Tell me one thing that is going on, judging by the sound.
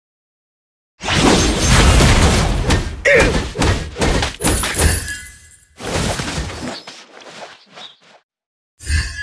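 Video game fight effects clash and burst with swooshes and impacts.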